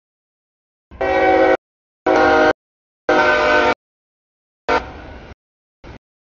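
A train horn blasts loudly several times.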